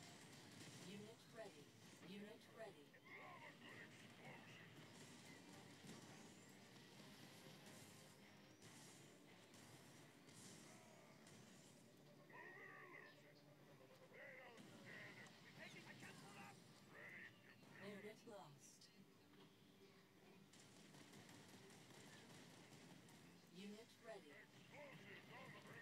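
Game units fire and explode in battle.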